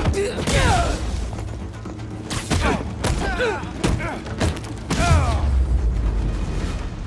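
Punches and kicks land in a fast brawl.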